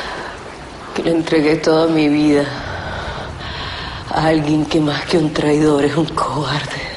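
A man speaks in a low, intimate voice close by.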